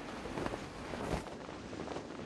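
Feet land with a soft thud.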